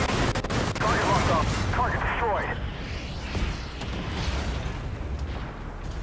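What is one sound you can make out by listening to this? Explosions burst nearby.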